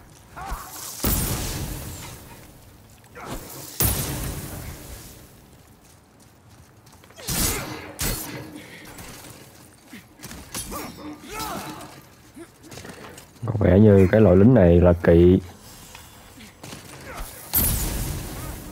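Metal weapons clash and strike sharply several times.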